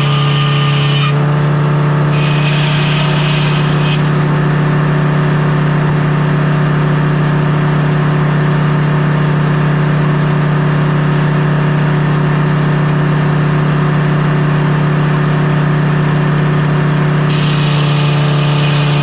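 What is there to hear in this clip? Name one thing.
A large circular saw whirs and spins.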